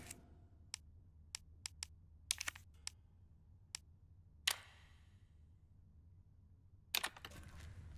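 Short electronic clicks sound at a keypad.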